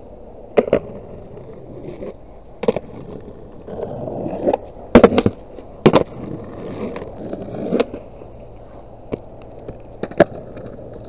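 A skateboard clacks sharply against the ground.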